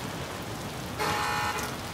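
A doorbell rings.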